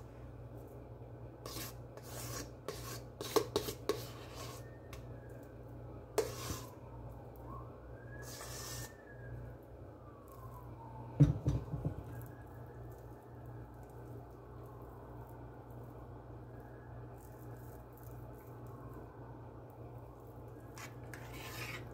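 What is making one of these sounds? A spoon softly scrapes and squelches through mashed potato.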